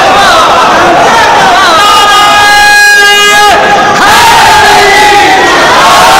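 A crowd of men chants loudly together.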